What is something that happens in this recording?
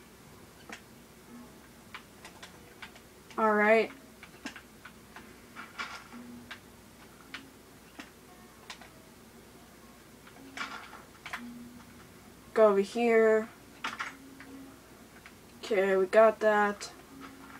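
Blocks crunch and thud as they are placed and broken in a game.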